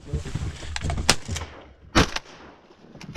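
A shotgun fires loud blasts close by.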